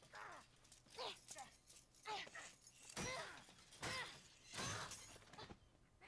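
A metal cage door rattles.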